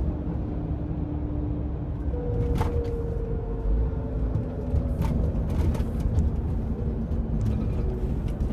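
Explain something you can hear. A truck engine hums low and steady from inside the cab.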